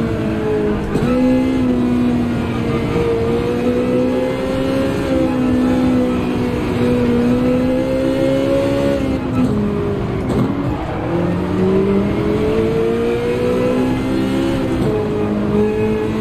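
A racing car engine roars steadily, drops in pitch sharply and then climbs again.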